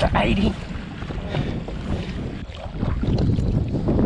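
A fish splashes into the water close by.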